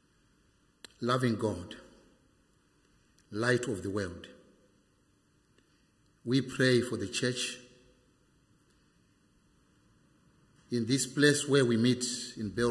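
An elderly man reads out slowly through a microphone, with pauses between phrases.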